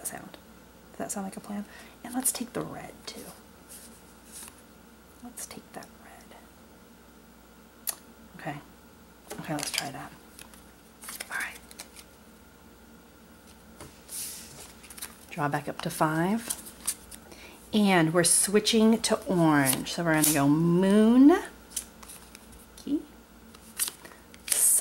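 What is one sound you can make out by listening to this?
Playing cards rustle and flick as they are sorted in the hands.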